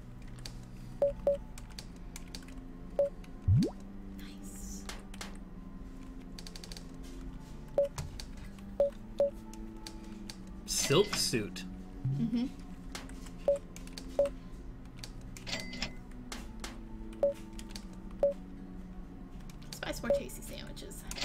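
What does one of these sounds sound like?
Short game menu blips sound as selections are made.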